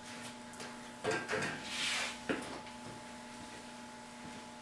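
Clothing rustles as a man stands up and moves away.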